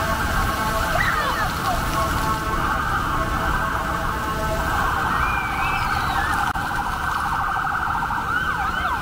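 A young child squeals playfully.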